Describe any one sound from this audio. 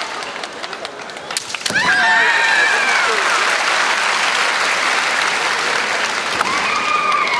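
A large crowd murmurs and applauds in a large echoing hall.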